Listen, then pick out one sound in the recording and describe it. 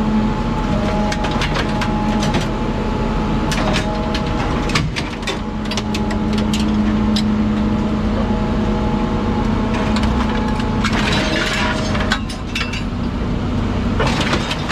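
Scrap metal crunches, creaks and snaps as it is crushed.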